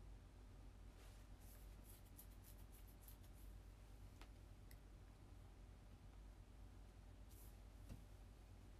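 Hands run through long hair with a soft rustle.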